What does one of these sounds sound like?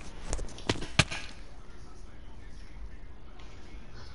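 A game character hits the ground hard after a fall.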